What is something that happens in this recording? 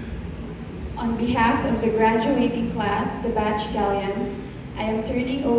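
A group of young women sing together in a large echoing hall.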